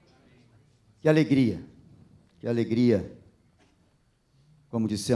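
A middle-aged man speaks slowly and calmly into a microphone, reading out.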